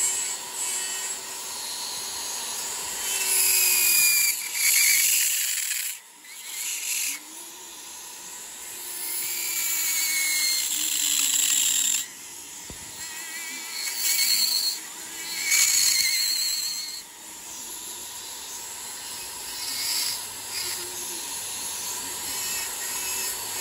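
A small rotary tool whines as it grinds a piece of wood, its pitch and loudness changing with the pressure.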